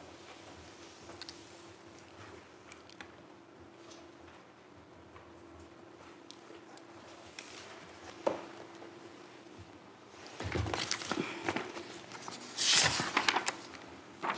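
Papers rustle as a woman handles them.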